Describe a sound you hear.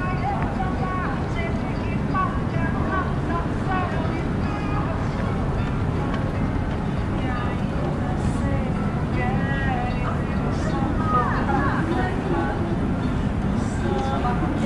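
A crowd of passersby chatters nearby outdoors.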